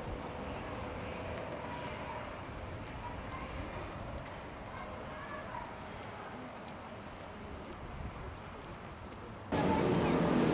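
Footsteps walk on pavement outdoors.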